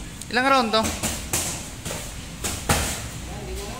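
Boxing gloves thud and smack against each other in quick blows.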